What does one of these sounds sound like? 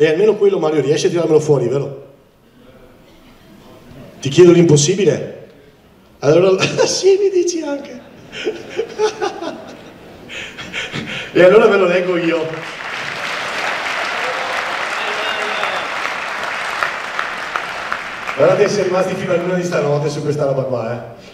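A man speaks with animation into a microphone, heard over loudspeakers in a large echoing hall.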